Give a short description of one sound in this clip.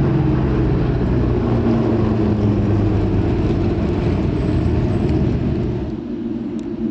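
A racing car engine roars loudly as a car speeds past.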